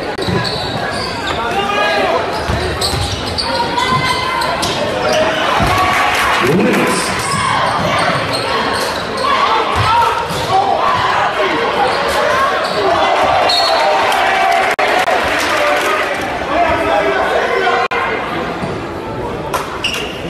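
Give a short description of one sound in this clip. A crowd cheers and chatters loudly in an echoing gym.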